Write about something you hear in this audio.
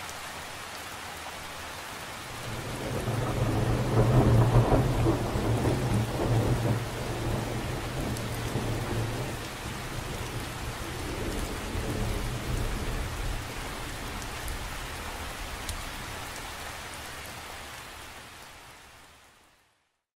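Raindrops patter steadily on the surface of a lake.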